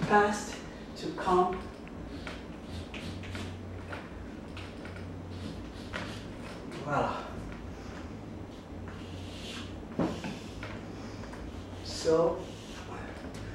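Chalk scrapes across a wall.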